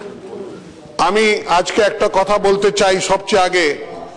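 An elderly man speaks firmly into a microphone.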